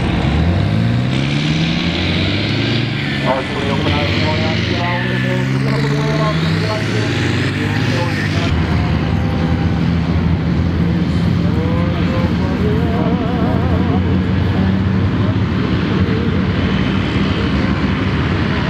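Heavy tracked vehicle engines roar and rev nearby, outdoors.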